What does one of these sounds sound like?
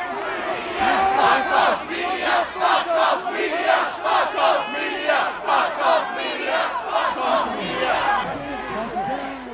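A large crowd chants loudly and rhythmically outdoors.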